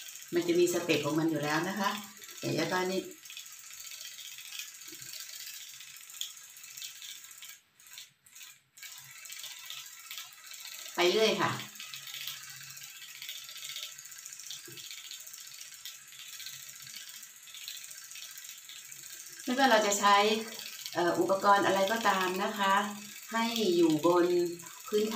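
A middle-aged woman talks calmly, close by.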